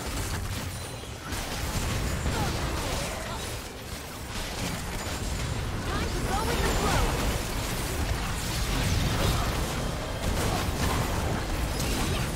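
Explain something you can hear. Magic blasts crackle and boom in a busy game battle.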